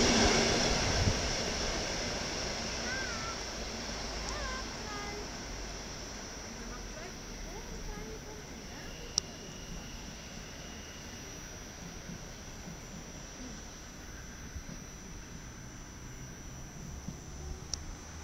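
A train rumbles away along the tracks, slowly fading into the distance.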